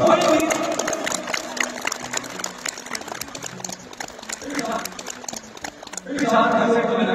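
A crowd claps hands.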